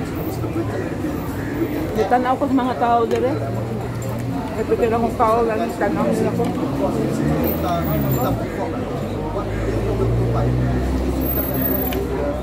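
Crispy flatbread crackles as a woman tears it.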